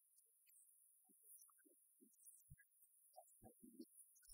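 A woman plays an acoustic guitar.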